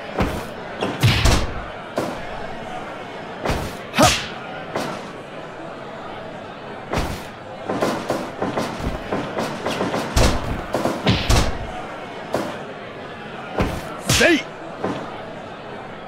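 Heavy blows and body slams thud sharply, again and again.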